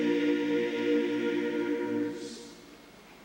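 A large male choir sings together in a big echoing hall.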